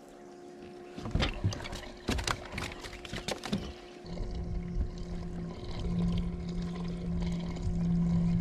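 A fishing reel whirs as line is reeled in.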